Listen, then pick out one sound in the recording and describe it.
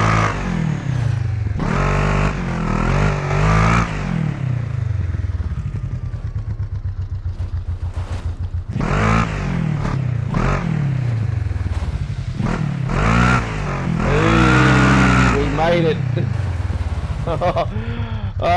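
An off-road buggy engine roars and revs up and down.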